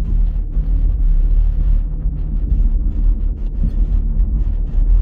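Wind rumbles steadily outdoors in the open.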